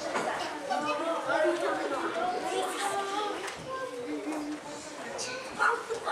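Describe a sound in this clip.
A group of young children sing together in a small echoing room.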